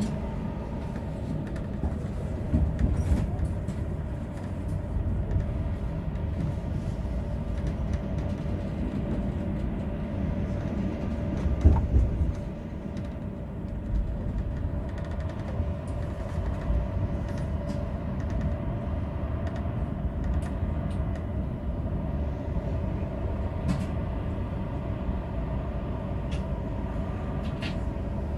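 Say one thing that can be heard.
Tram wheels click over rail joints.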